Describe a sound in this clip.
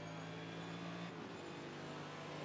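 A race car engine briefly dips as the gear shifts, then drones again.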